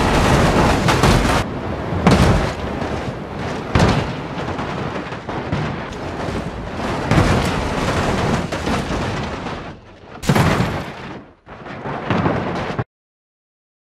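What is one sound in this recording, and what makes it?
A heavy truck engine roars as the truck bounces over rough ground.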